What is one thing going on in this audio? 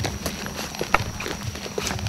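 Rubber boots tread on a dirt path.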